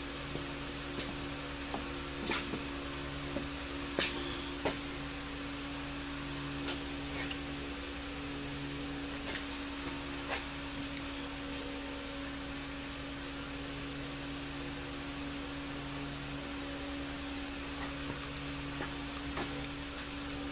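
Small metal parts click and tap close by.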